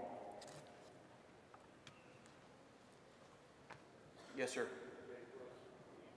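A man speaks into a microphone over a loudspeaker in a large echoing hall.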